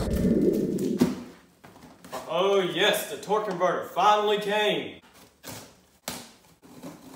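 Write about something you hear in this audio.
A cardboard box rustles and thumps as it is handled.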